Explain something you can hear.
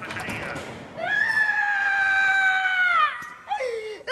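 A young woman screams loudly in a long, drawn-out cry.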